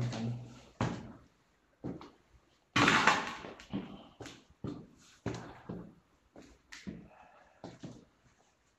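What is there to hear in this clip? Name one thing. Footsteps thud and scuff on concrete stairs.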